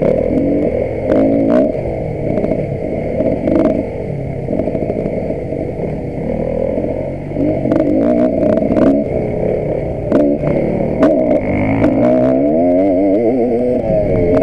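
A dirt bike engine revs loudly up close, rising and falling in pitch.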